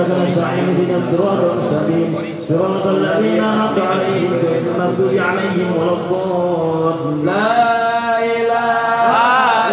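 A group of men chant together through a loudspeaker, in a large echoing space.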